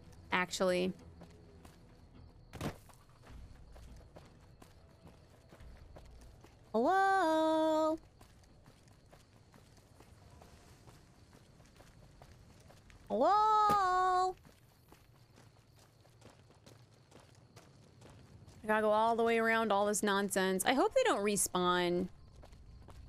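A young woman speaks with animation into a close microphone, in short bursts.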